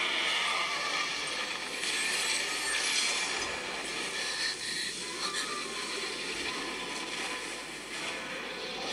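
Video game sound effects whoosh and shimmer.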